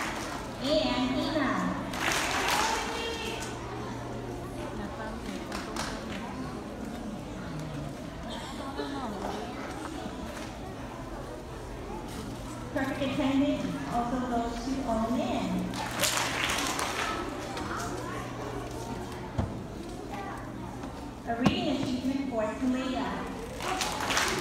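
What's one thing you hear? A crowd of children chatters in the background.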